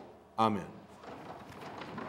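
Pages of paper rustle as they are turned.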